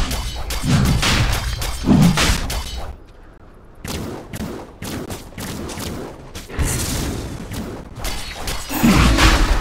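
Magic blasts crash and whoosh in a fierce game battle.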